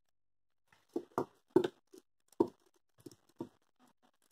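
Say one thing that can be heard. A plastic action figure's joints click as they are bent.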